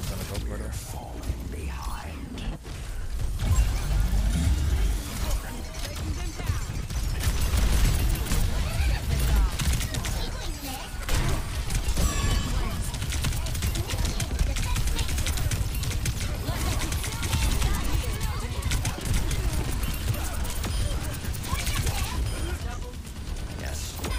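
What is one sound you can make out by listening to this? Game guns fire in rapid bursts with sharp electronic zaps.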